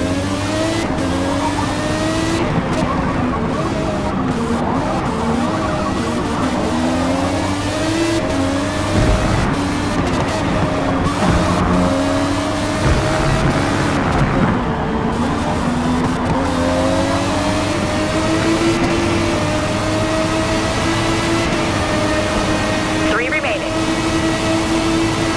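A racing car engine revs high, rising and falling in pitch through the gear shifts.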